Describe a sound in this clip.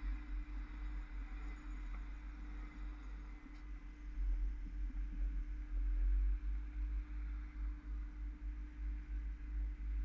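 An electric bus motor hums steadily.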